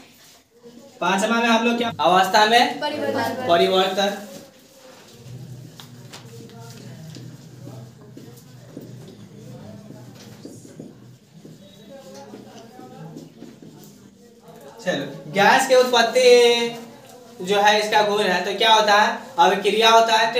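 A young man speaks loudly and with animation in an echoing room.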